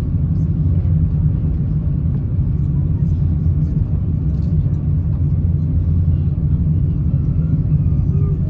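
A jet airliner's engines rumble steadily inside the cabin.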